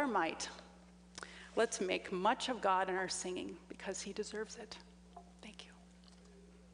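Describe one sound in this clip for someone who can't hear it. A woman speaks calmly into a microphone in a large hall.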